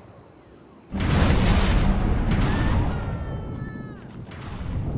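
A loud rushing whoosh roars as a figure speeds off in a burst of energy.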